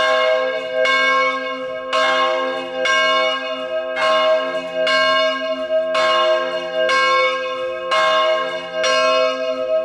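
A church bell rings out in steady, evenly spaced strokes, each one humming on as it fades.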